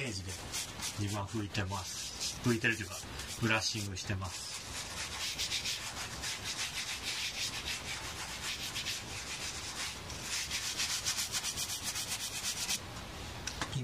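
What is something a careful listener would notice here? A brush scrubs rhythmically over a leather glove.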